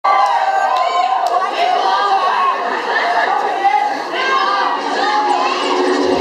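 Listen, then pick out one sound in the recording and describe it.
An audience cheers and screams loudly in a large hall.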